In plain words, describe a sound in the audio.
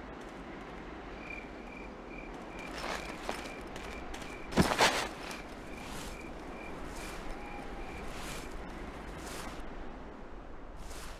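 Footsteps fall slowly on a hard floor.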